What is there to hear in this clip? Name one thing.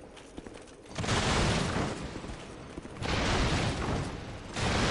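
A heavy sword swishes through the air.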